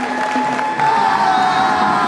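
Young men cheer and shout loudly outdoors.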